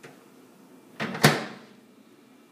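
A microwave door thumps shut.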